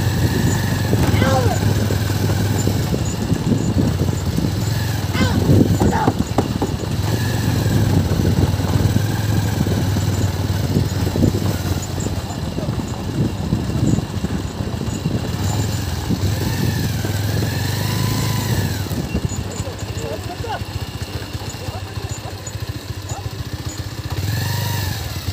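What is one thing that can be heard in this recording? A wooden cart rumbles and rattles over a dirt track.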